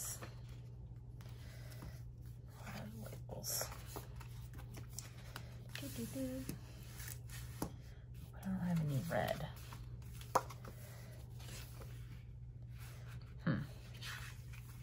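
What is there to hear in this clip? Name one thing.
Paper sticker sheets rustle and flap as they are handled.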